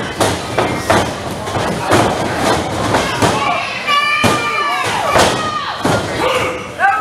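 Bodies slam hard onto a wrestling mat.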